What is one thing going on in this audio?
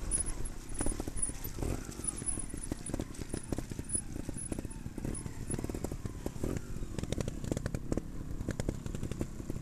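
Bicycle tyres rattle and bump over a rough, stony trail.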